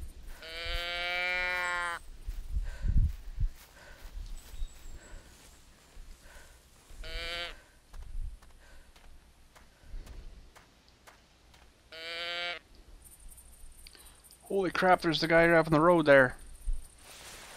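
Footsteps tread on a dirt path.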